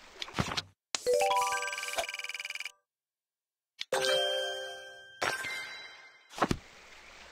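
Bright game chimes ring out in quick runs of notes.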